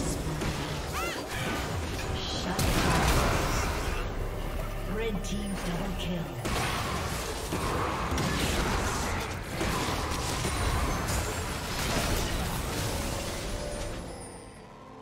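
Game combat sounds of blasts and clashing weapons crackle rapidly.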